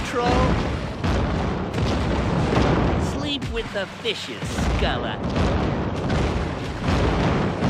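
An explosion bursts with a deep rumbling blast.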